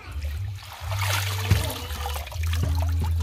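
Water splashes and drips from wet leaves into a basin.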